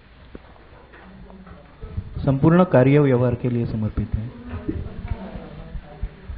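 A young man speaks to a room, heard in a slightly echoing space.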